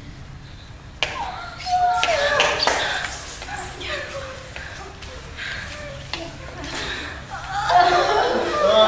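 A group of young people calls out together.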